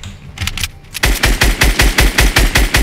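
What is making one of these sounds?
Rapid gunshots fire in quick succession.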